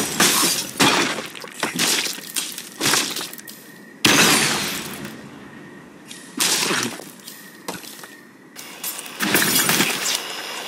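Wooden blocks crash and clatter as a structure collapses.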